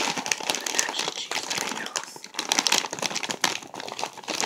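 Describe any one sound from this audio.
A plastic snack bag crinkles loudly.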